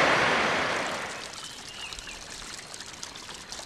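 Water trickles steadily from a pipe onto the ground.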